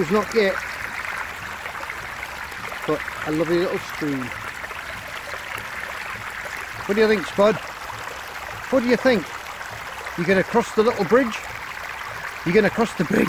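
A shallow stream babbles and splashes over stones.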